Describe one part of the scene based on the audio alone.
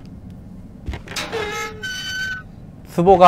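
A wooden door creaks open slowly.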